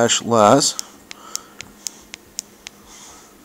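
A small button clicks under a thumb.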